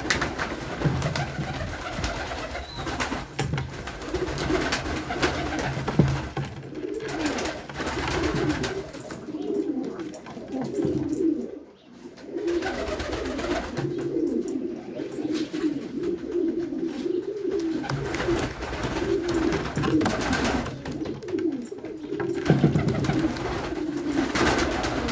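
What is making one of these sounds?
Many pigeons coo steadily close by.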